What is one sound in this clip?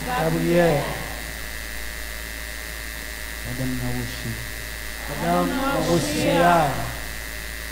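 A crowd of men and women sings together loudly in bursts.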